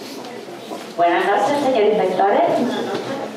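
A young woman speaks into a microphone, heard through loudspeakers.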